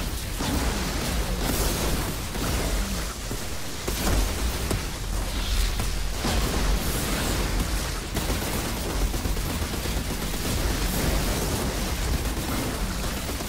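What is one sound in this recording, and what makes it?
Electric energy crackles and hums loudly.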